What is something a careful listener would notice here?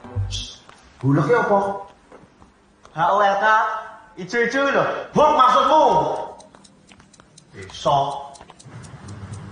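Young men speak loudly and urgently, close by.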